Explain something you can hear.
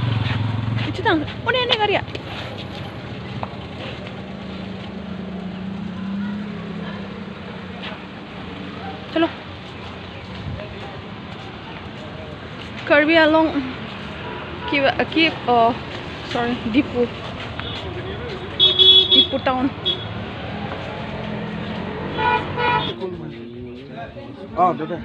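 A young woman talks close by in short bursts.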